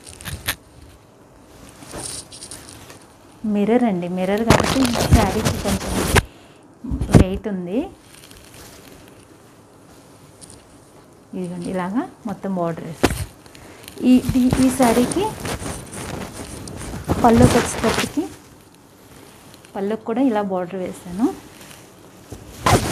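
Silk fabric rustles as it is unfolded and handled.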